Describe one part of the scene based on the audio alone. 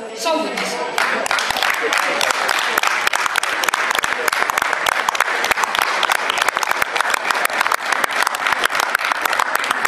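A crowd claps along in a quick rhythm.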